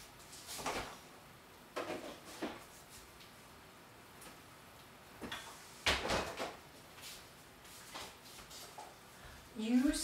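Water bubbles and sputters in a covered pot on the stove.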